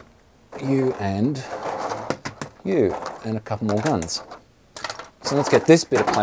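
A plastic tray crinkles and rustles as hands press on it.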